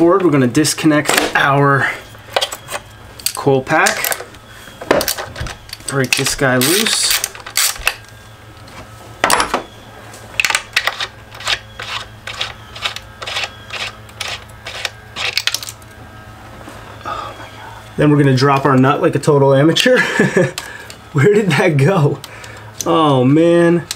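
Metal tools click and tap against engine parts.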